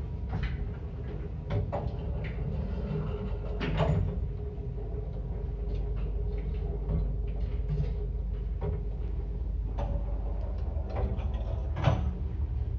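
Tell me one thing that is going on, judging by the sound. A lift hums and rumbles steadily as it moves.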